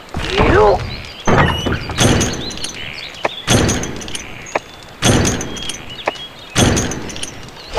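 Short electronic menu clicks and chimes sound in quick bursts.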